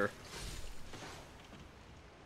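A sword clangs against a metal shield.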